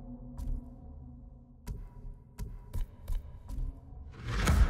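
Short menu clicks tick several times.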